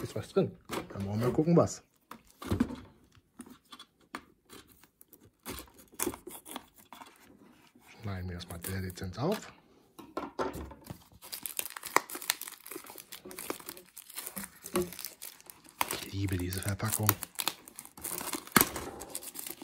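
A plastic-wrapped box crinkles and rustles as hands handle it.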